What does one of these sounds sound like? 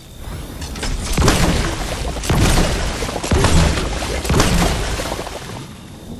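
Loud explosions burst and crackle in a game.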